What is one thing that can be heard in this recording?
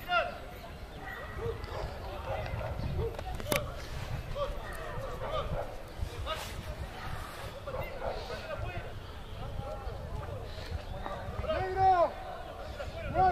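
Young men shout and call out to each other across an open field.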